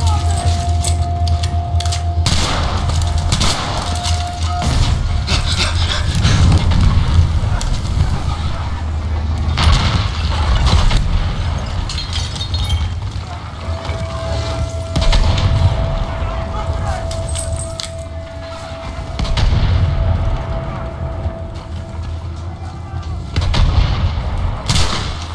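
Gunshots crack repeatedly nearby and far off.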